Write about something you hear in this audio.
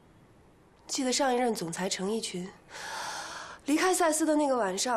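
A young woman speaks calmly up close.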